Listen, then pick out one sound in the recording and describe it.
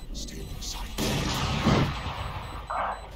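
A soft magical whoosh sounds as a wall of energy is raised.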